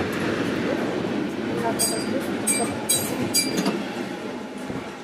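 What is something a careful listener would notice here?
Adults talk nearby in a crowd.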